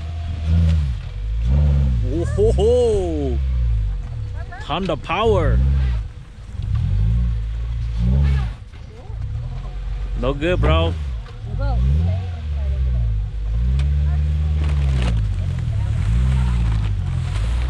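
Tyres spin and churn through wet slush and mud.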